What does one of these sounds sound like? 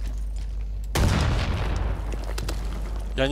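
An explosion booms and rumbles.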